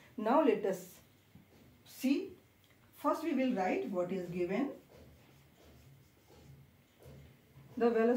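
A woman speaks calmly and clearly, close by, in short phrases.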